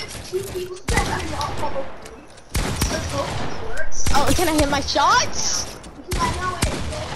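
Shotgun blasts boom in quick succession.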